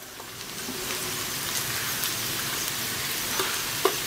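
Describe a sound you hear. Shredded cabbage drops into a frying pan.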